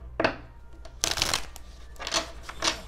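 Playing cards are shuffled with quick rustles.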